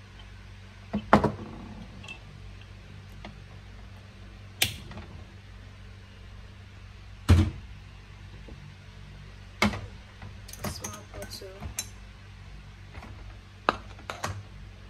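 Glass bottles knock and clink against a hard surface.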